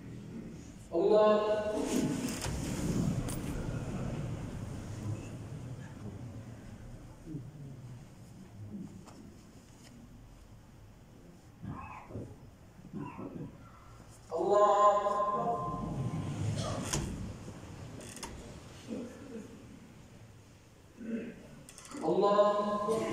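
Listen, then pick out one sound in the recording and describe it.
A man's voice calls out in a long chant over a loudspeaker, echoing through a large hall.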